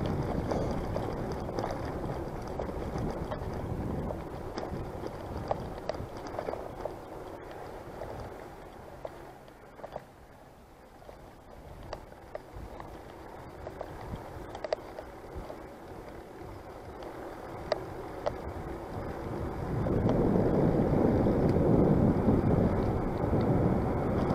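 A bicycle rattles and clicks over a paved path.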